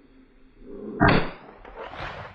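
A rifle shot booms outdoors.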